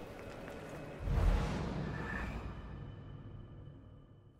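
A loud boom bursts out and rings away.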